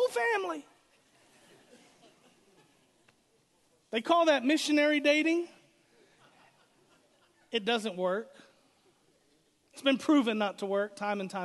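A middle-aged man speaks with animation through a microphone, with pauses between phrases.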